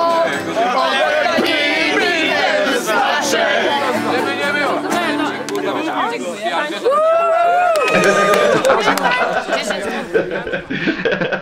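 A guitar is strummed.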